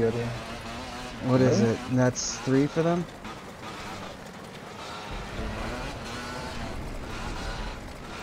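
A motorcycle engine hums and revs.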